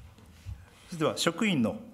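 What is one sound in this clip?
A middle-aged man begins reading out calmly into a microphone.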